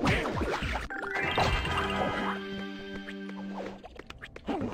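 Bright chiming notes ring out quickly as items are collected.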